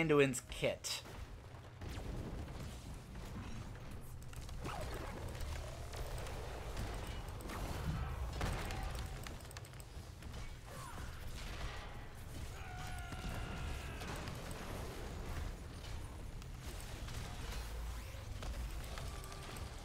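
Video game combat sounds clash, zap and explode.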